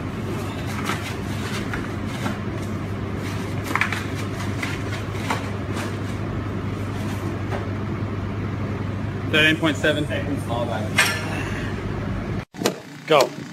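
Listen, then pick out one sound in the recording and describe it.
Cardboard boxes are folded and snapped shut.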